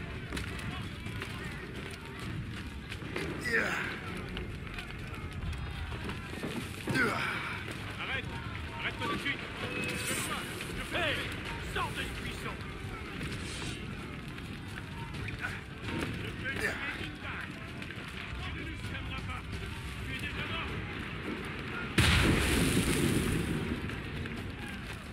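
A low rumble of distant battle rolls on throughout.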